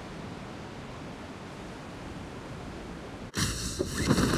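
Wind rushes steadily during a freefall.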